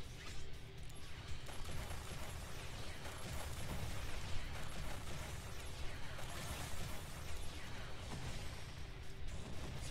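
Game sword slashes and magic effects crackle and clash.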